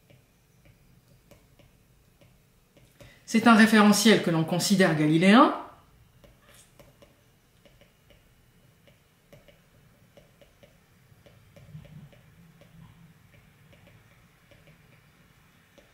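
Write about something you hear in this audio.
A stylus taps and scratches lightly on a tablet.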